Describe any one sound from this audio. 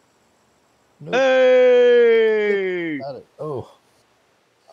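A middle-aged man close to a headset microphone lets out a long, drawn-out groan that falls in pitch, then a short second cry.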